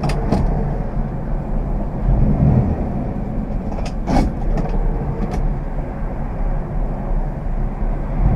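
Cars pass by on the road with a brief whoosh.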